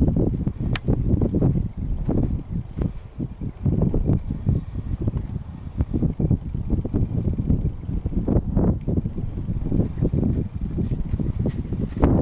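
A horse's hooves thud on grass as it canters.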